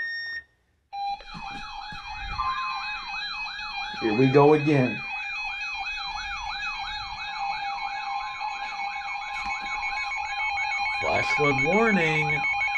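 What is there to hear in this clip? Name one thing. A weather radio sounds a loud, warbling electronic alert tone.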